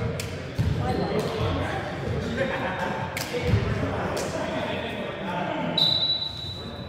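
Young men talk and call out to each other in a large echoing gym.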